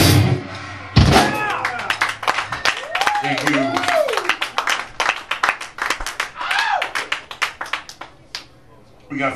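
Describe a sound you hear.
Drums crash and pound.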